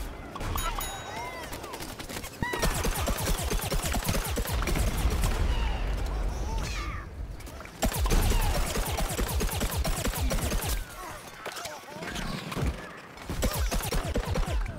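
Rapid game gunfire pops and thuds.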